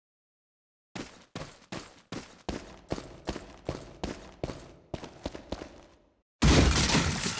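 Footsteps hurry along a hard floor.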